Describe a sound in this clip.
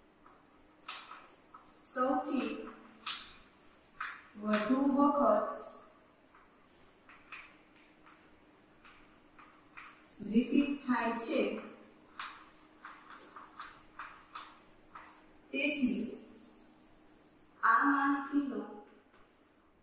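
A young woman speaks calmly, explaining.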